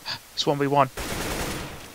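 A rifle fires in a quick burst.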